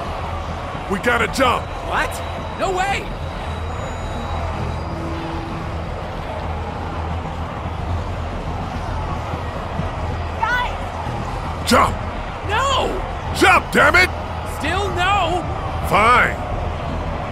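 A young man shouts in alarm.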